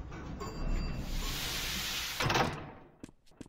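A heavy metal door slides open with a rushing hiss.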